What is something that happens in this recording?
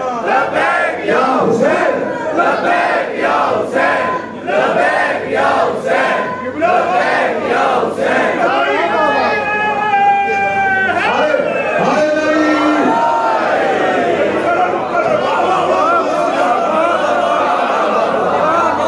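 A man speaks passionately into a microphone over loudspeakers, in an echoing hall.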